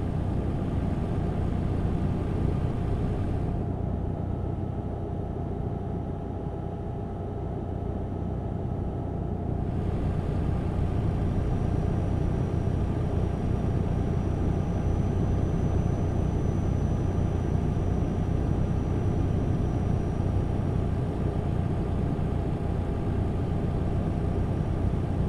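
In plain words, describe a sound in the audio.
A truck engine hums low and steady while driving.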